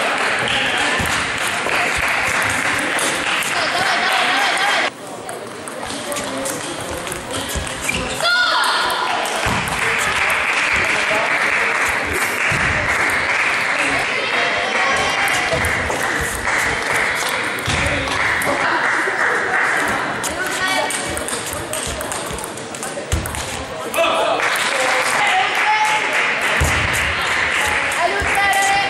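A table tennis ball clicks back and forth between paddles and table in a large echoing hall.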